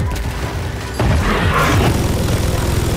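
A huge beast roars loudly.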